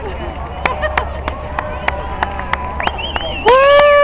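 A crowd of spectators claps.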